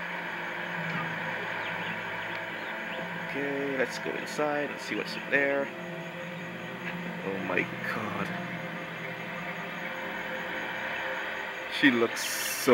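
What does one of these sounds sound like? Eerie game ambience plays quietly through a television speaker.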